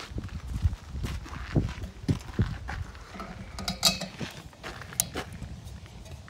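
Metal fittings clink and knock as a gas bottle is handled.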